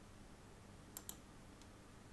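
A game interface gives two soft clicks.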